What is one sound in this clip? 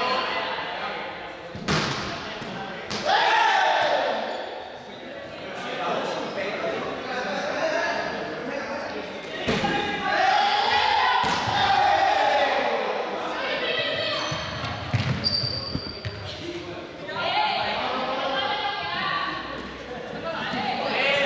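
A crowd of young people chatter and shout in a large echoing hall.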